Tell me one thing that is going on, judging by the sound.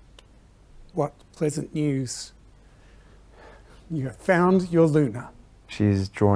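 A middle-aged man speaks warmly and calmly.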